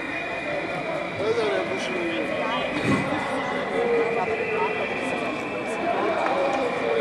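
A crowd of men and women talks and chatters outdoors.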